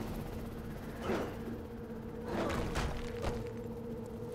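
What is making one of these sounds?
Heavy thuds sound as a figure lands after leaping.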